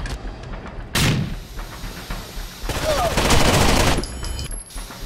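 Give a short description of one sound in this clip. A rifle fires several loud shots in quick bursts.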